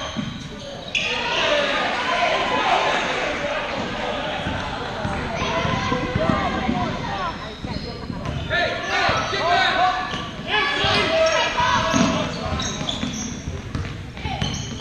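A crowd of children shout and cheer in a large echoing gym.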